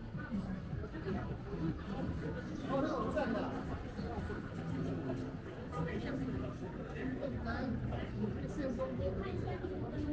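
Voices of people chatter in the distance.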